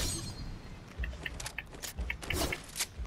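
A treasure chest creaks open.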